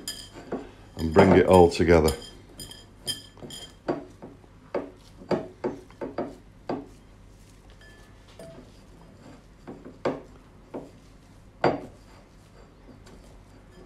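Fingers tap and scrape against a ceramic bowl.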